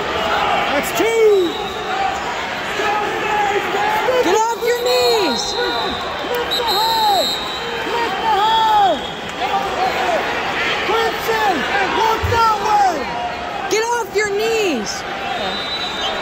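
Spectators shout loudly in short bursts of encouragement.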